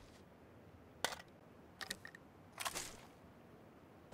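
Gear rattles briefly as items are picked up.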